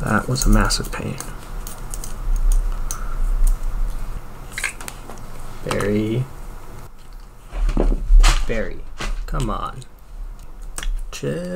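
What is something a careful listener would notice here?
Small metal parts click and tap as hands handle them.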